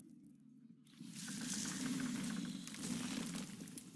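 A magic blast bursts with a bright, crackling whoosh.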